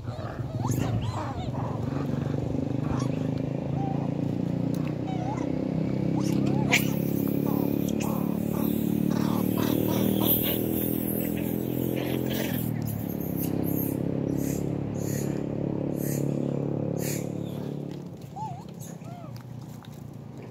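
Monkeys give short, high squeaks now and then.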